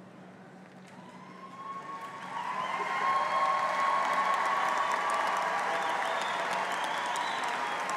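A crowd applauds and cheers, growing louder.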